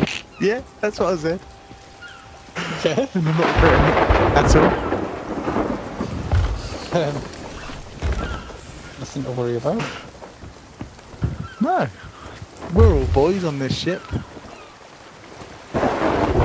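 Waves wash against the hull of a sailing ship.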